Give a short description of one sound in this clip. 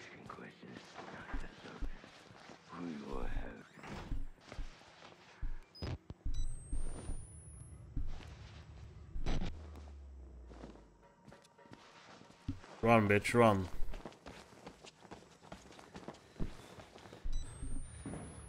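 A young man talks into a headset microphone, close and in a low, tense voice.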